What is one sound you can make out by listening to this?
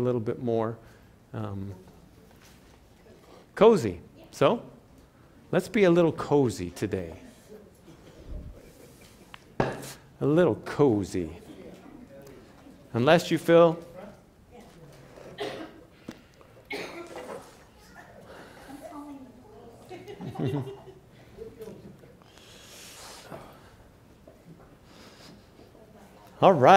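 A man speaks calmly into a microphone in a large echoing hall, with pauses.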